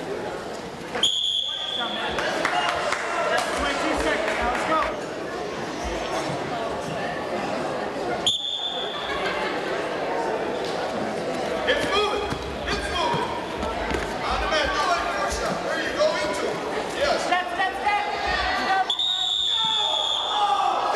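A referee blows a short whistle several times.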